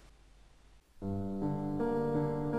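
Music plays from a media player.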